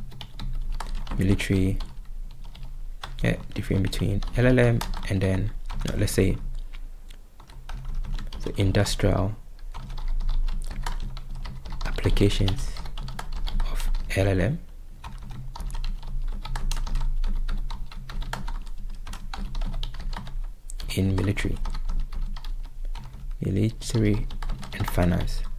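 Keys clatter on a keyboard.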